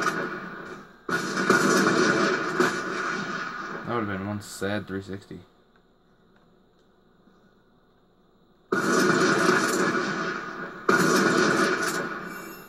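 Loud video game sound effects blare from a television loudspeaker.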